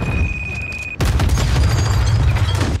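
A small explosion bangs and debris scatters.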